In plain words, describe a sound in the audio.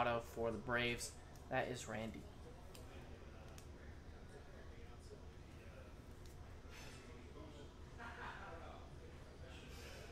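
A plastic card sleeve crinkles between fingers.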